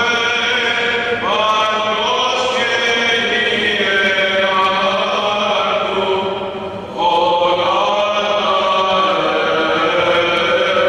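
A man chants in a deep voice, echoing through a large hall.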